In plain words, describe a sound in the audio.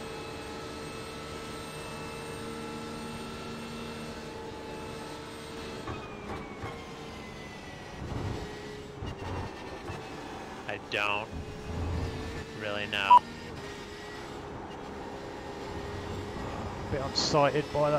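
A racing car engine drones steadily, rising and falling in pitch.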